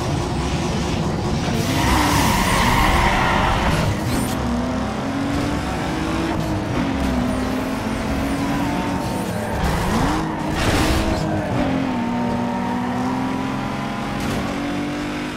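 A car engine revs hard, its pitch rising and dropping with each gear change.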